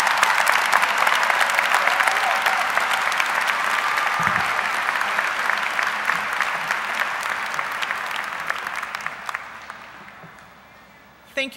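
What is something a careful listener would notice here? A large crowd applauds, then the applause fades away.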